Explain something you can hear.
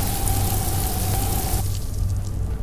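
A magical beam hums and crackles loudly, then cuts off.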